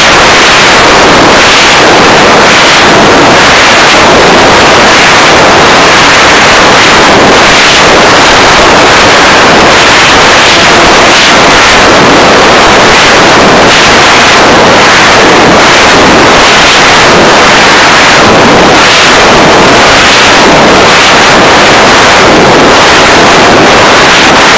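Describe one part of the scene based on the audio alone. Wind roars and buffets against the microphone of a flying model plane.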